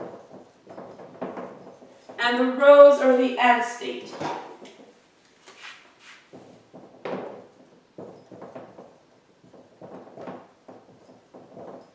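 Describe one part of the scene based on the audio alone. A woman explains calmly.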